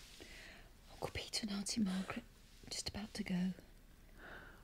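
A woman sobs and whimpers close by.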